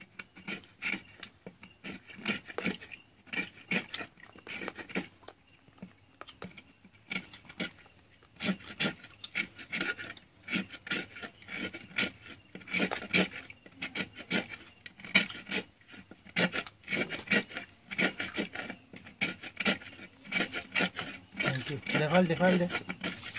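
A coconut husk scrapes and crackles as hands rub and pull at its fibres.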